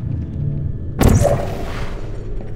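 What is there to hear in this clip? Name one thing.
A device fires with a sharp electric burst.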